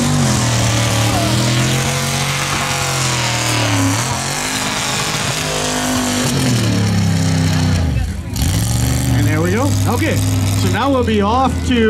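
A truck engine roars loudly, revving up and down.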